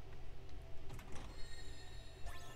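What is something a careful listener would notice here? A treasure chest creaks open.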